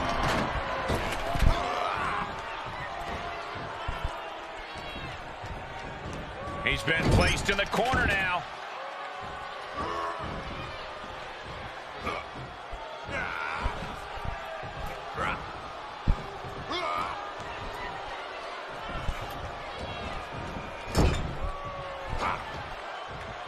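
A crowd cheers and murmurs steadily.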